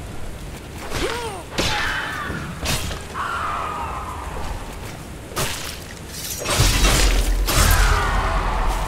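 Metal weapons clash and slash in quick blows.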